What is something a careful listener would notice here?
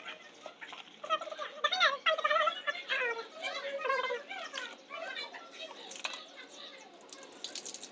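Water splashes in a bucket as clothes are washed by hand.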